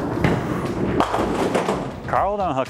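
Bowling pins crash and clatter as the ball strikes them.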